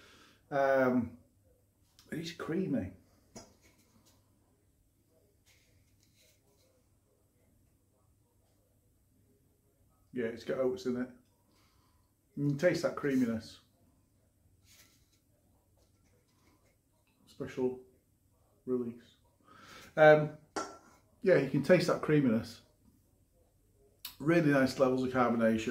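An elderly man talks calmly and close up, in short bursts with pauses.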